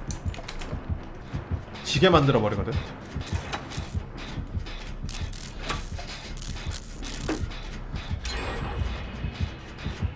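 A machine clanks and rattles as it is repaired.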